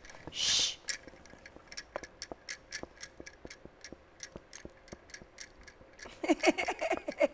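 A pen taps and scratches on paper.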